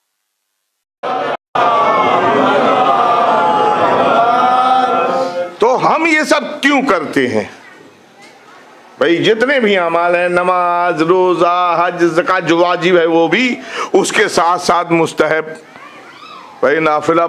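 An elderly man speaks with feeling into a microphone, heard through a loudspeaker.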